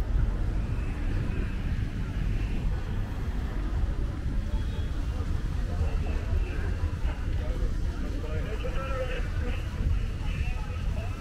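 Young men and women chatter casually at a distance.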